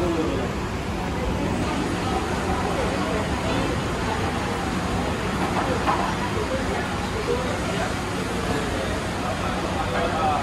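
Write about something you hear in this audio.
Many people's voices chatter in a busy crowd.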